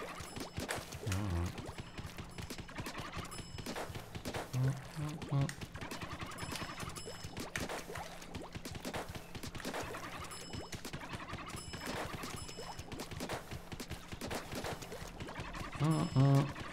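Game ink sprays and splatters in quick bursts.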